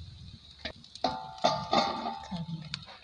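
A metal lid clinks down onto a pan and rings briefly.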